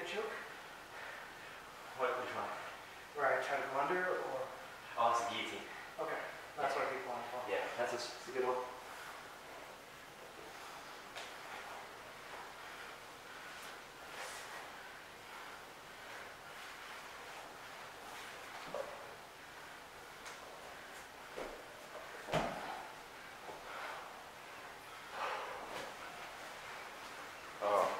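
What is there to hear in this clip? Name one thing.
Bodies shuffle and thump on a padded mat.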